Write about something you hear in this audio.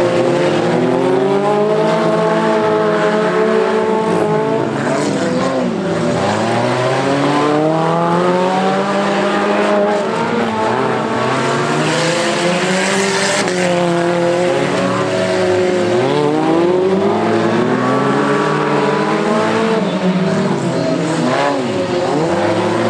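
Car engines roar and rev loudly, rising and falling in pitch.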